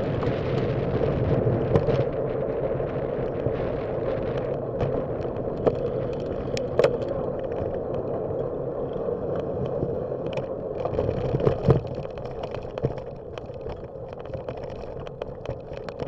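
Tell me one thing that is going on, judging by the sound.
Wind rushes steadily across the microphone outdoors.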